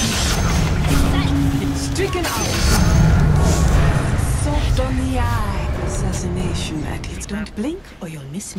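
Game spells crackle and explode loudly in a hectic fight.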